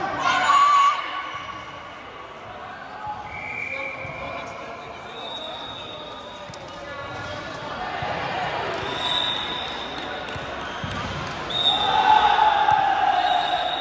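Young women chatter and call out in a large echoing gym.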